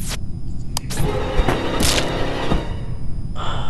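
A sharp slashing sound effect rings out in a game.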